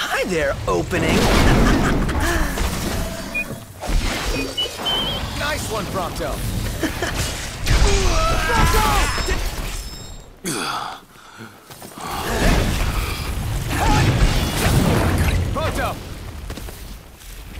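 Heavy blows and impacts thud and crash over and over.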